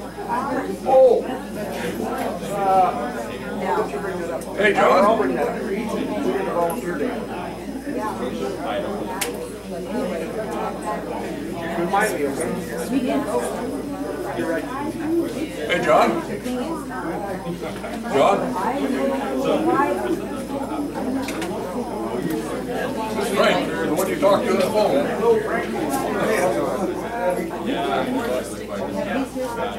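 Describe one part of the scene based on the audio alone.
Several adults talk and chatter in a room with a hard, echoing sound.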